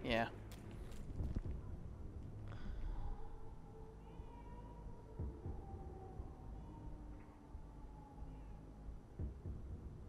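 Footsteps thud slowly on a hard floor.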